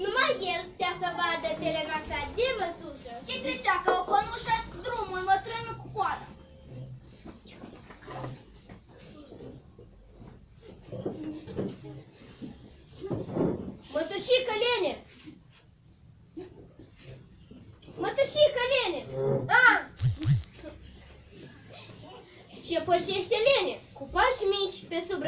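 Young children sing and recite together, loud and close.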